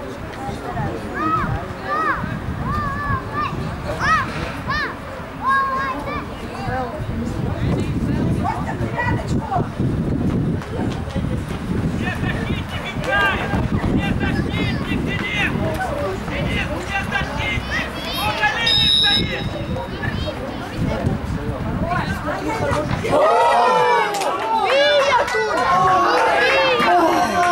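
Young players shout to each other far off across an open field.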